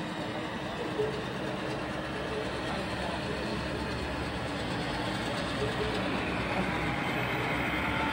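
A model train rumbles along its track.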